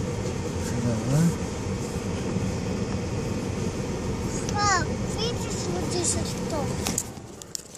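A young child squeals and babbles nearby.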